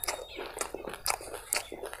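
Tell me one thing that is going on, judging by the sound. A man chews food loudly and close up.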